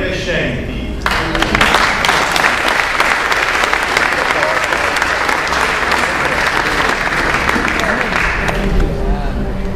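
Hands clap in lively applause.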